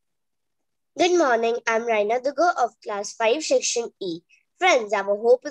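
A young girl speaks with animation over an online call.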